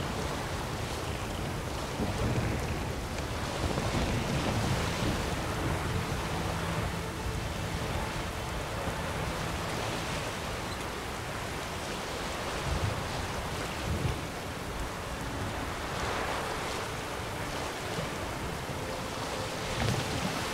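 Strong wind blows over open water.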